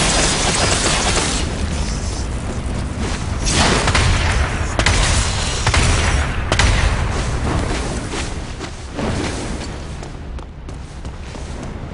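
Sword slashes and impacts crash loudly.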